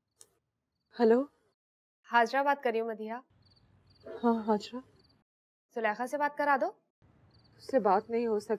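A young woman talks into a phone.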